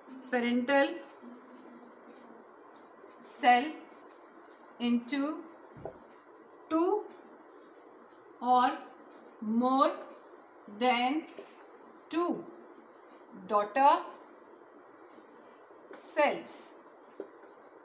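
A woman speaks slowly in short, separate phrases, as if dictating.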